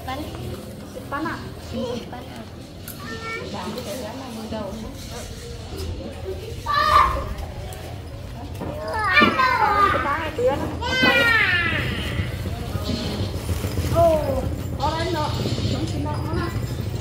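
A young boy talks.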